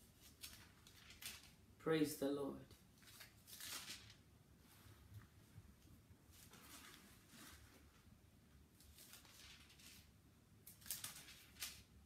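Paper pages rustle and turn.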